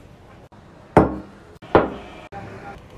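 A glass jar knocks on a wooden table.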